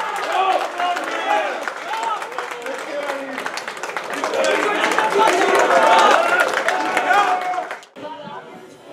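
Several men shout and cheer excitedly nearby outdoors.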